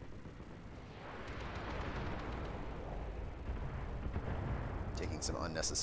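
Missiles whoosh and explosions rumble.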